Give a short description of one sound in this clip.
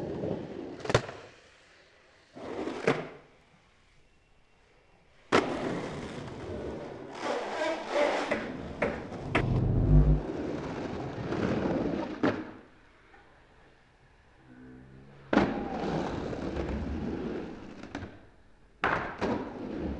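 A skateboard deck clacks sharply against concrete.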